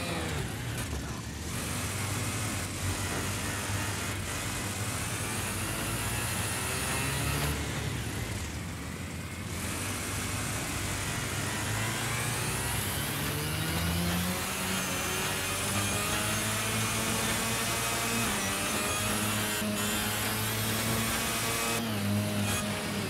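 A small kart engine buzzes, revving up and down.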